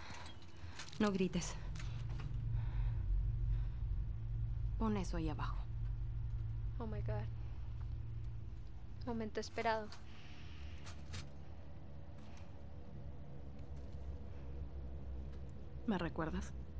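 A young woman speaks tensely and close by.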